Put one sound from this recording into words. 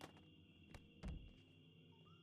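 A body slams hard onto the ground.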